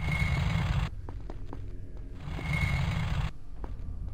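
Quick footsteps patter on stone.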